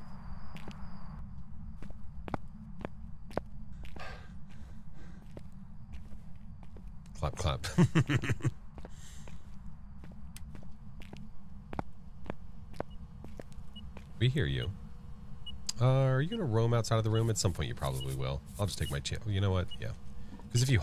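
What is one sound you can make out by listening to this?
Footsteps echo slowly on a hard floor.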